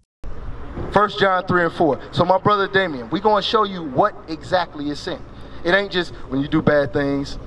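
A man speaks with animation into a microphone, heard through a loudspeaker outdoors.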